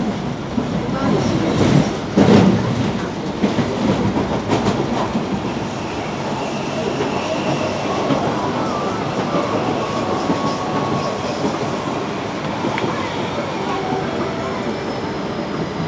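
A vehicle rumbles steadily as it travels along at speed.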